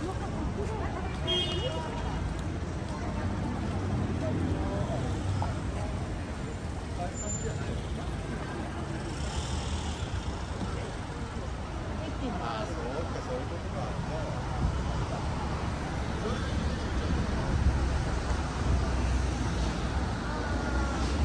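Pedestrians talk quietly at a distance outdoors.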